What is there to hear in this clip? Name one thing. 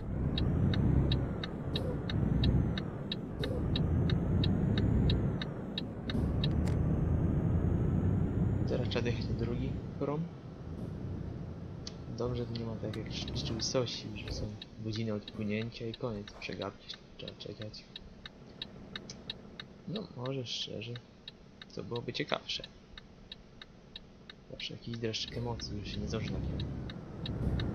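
A truck engine rumbles low and steady, louder at first and then quieter.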